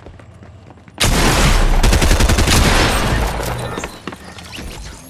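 A loud burst of game sound effects erupts as a player is eliminated.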